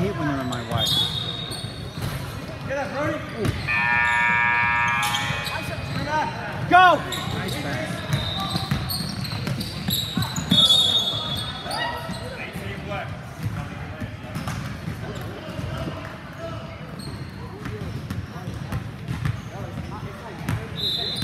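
A crowd of spectators murmurs and calls out in the background.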